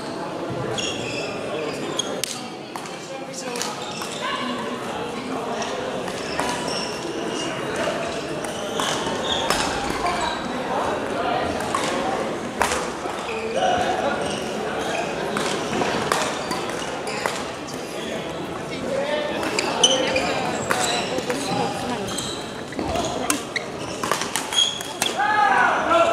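Sports shoes squeak on the hall floor.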